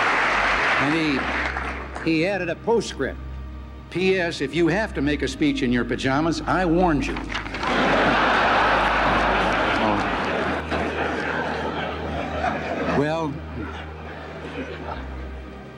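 An elderly man speaks calmly into a microphone, heard over loudspeakers.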